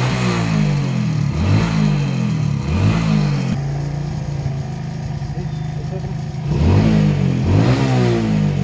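A motorcycle engine revs up and down repeatedly, close by.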